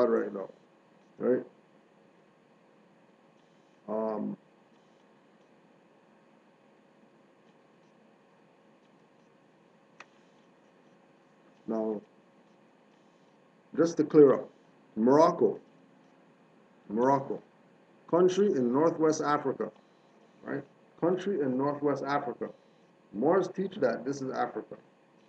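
A man speaks calmly and close by, heard through a computer microphone, with long pauses.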